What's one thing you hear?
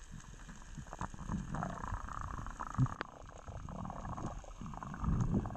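Water swirls and sloshes close by near the surface.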